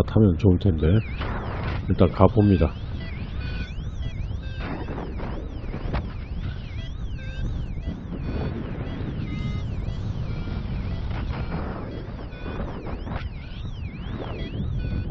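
Wind rushes and buffets steadily, high up in open air.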